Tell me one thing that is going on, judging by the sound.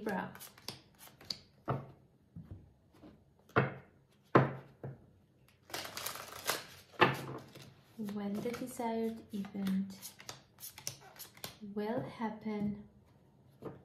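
Cards are laid down on a table with soft taps.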